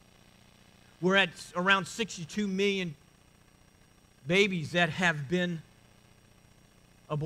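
A middle-aged man speaks calmly into a microphone, in pauses.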